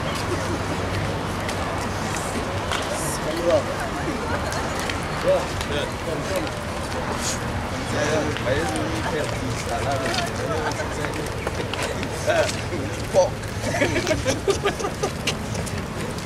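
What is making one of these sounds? A crowd of men and women murmur and talk nearby outdoors.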